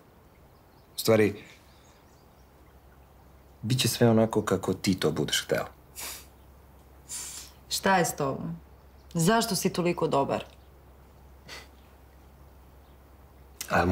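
A man speaks softly and closely.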